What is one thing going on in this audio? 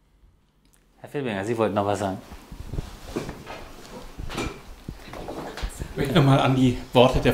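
A man speaks calmly into a nearby microphone.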